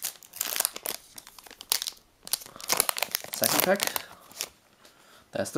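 Foil wrapping crinkles and tears as it is ripped open by hand.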